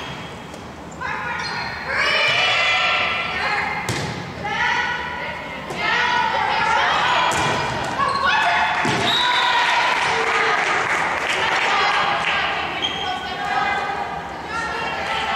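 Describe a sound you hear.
Spectators cheer and shout loudly in a large echoing gym.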